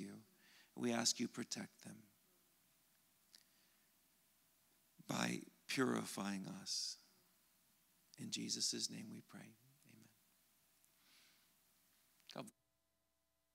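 A middle-aged man speaks calmly and thoughtfully into a microphone, with pauses.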